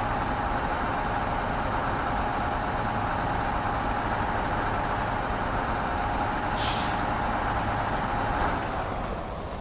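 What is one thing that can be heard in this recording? A heavy truck engine roars steadily, heard from inside the cab.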